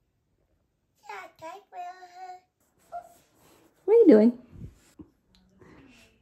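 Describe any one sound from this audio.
A young woman speaks playfully close by.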